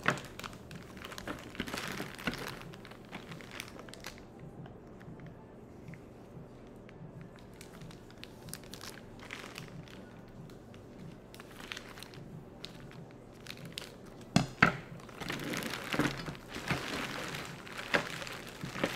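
Plastic bags crinkle and rustle close by.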